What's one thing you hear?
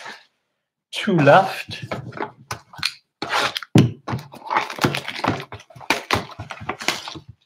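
A cardboard box rustles as it is handled and opened.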